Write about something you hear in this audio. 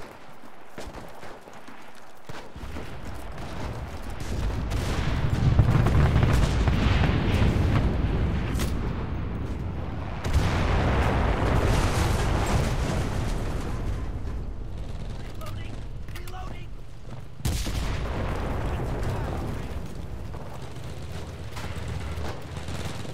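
Footsteps run quickly over grass and mud.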